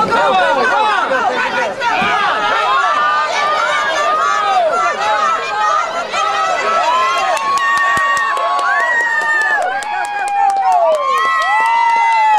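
A crowd cheers and screams loudly outdoors.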